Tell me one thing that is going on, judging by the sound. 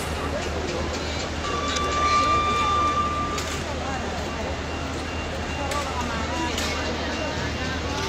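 A large crowd murmurs and chatters all around, outdoors.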